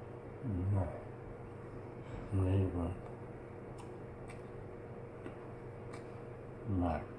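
A man speaks briefly and casually, close by.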